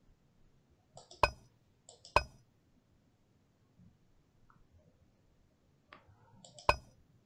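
Heavy tiles clunk into place with a sharp knock.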